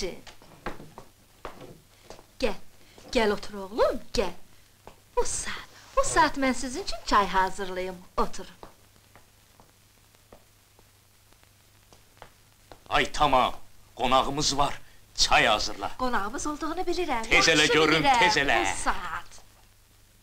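An elderly woman talks with animation.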